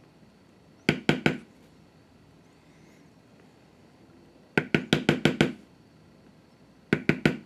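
A mallet taps a metal stamping tool into leather in short bursts.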